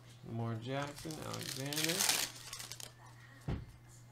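Stiff trading cards rustle and slide against each other.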